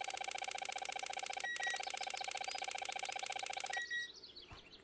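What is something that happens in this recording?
A metal detector buzzes with a steady electronic tone.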